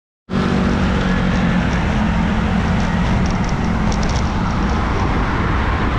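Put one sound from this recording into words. Motorcycle engines hum nearby.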